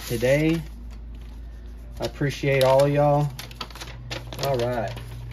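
Paper crinkles and rustles as an envelope is opened by hand.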